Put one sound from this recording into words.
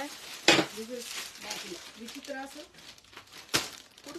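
Plastic wrapping crinkles.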